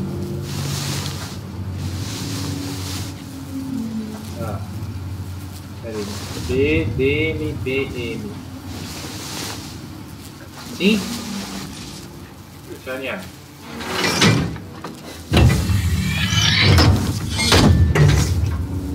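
A heavy metal lever creaks and clanks as it is pulled.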